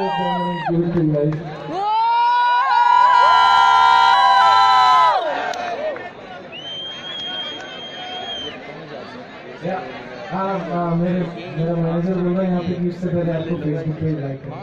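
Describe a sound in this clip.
A man sings through a microphone.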